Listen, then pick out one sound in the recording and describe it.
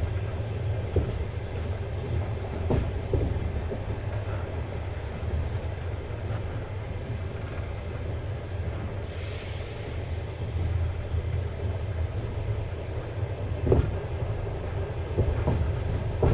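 Train wheels knock now and then over rail joints.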